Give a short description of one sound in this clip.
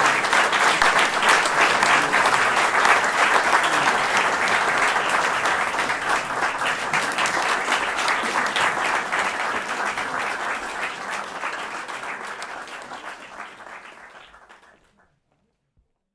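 An audience applauds in a hall and the clapping slowly fades away.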